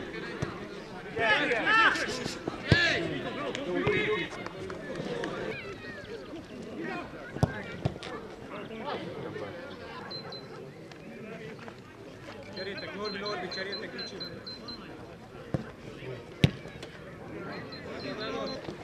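Spectators shout and cheer from the sidelines outdoors.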